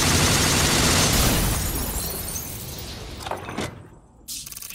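A huge explosion roars and rumbles.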